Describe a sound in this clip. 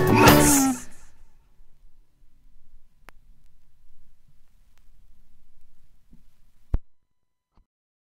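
A record stylus crackles and thumps softly in the run-out groove.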